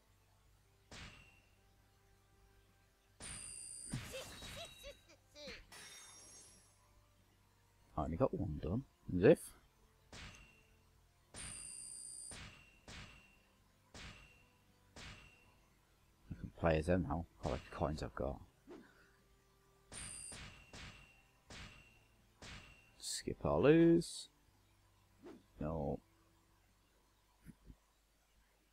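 Short electronic menu chimes blip again and again.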